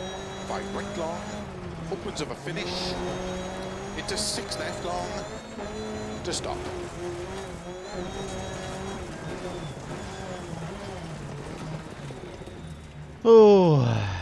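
A rally car engine revs and roars as gears change.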